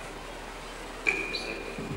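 A microphone thumps as a man adjusts it.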